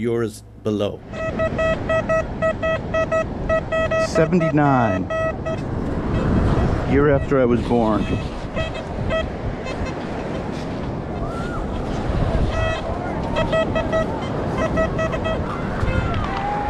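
A metal detector beeps in short, repeated tones.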